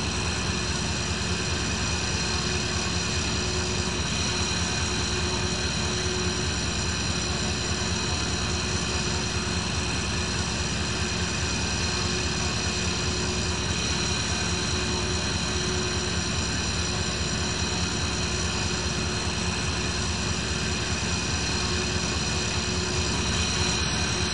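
A jet engine hums steadily nearby.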